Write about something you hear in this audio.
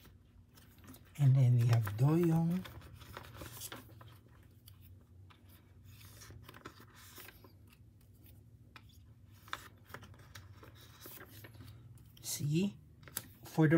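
Plastic sleeves rustle and crinkle as cards are slipped in and out.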